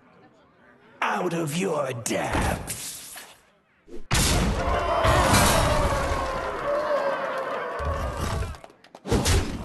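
A card game's attack lands with a crunching, magical impact.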